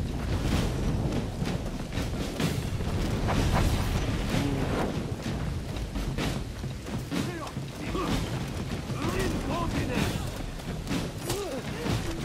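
Footsteps thud on stone and wood.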